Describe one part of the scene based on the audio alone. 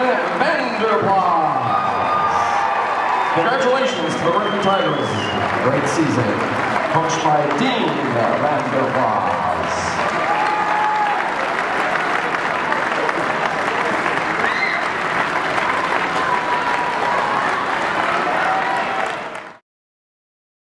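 A large crowd cheers and applauds in a big echoing gym.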